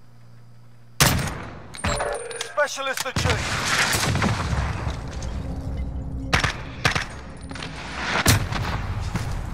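Gunfire bursts out in loud, sharp cracks.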